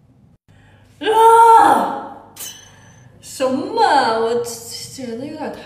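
A young woman speaks loudly and excitedly, close by.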